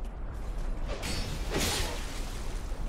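A sword clangs against metal armour.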